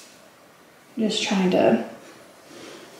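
A young woman speaks briefly and casually, close by.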